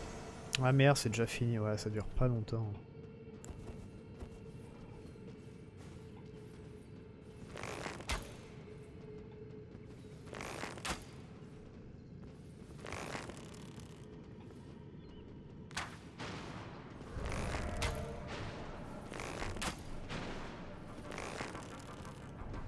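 Armoured footsteps crunch over grass and earth.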